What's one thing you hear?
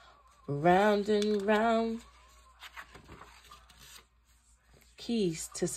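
A sheet of paper rustles as a page is turned.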